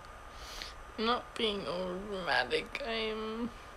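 A young woman speaks with animation close to a phone microphone.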